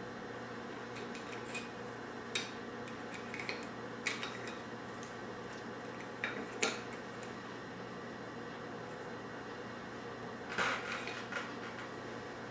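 Small ceramic tiles clack as they are lifted out of a ceramic holder and set back in.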